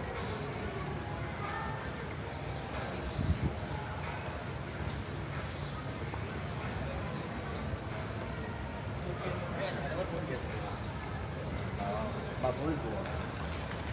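A steady low hum and murmur fills a large echoing hall.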